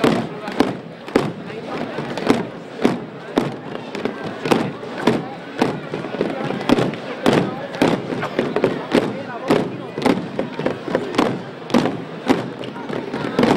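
A crowd murmurs quietly nearby.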